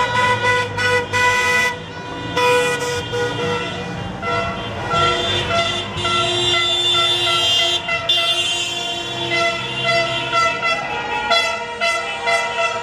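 Car horns honk loudly and repeatedly.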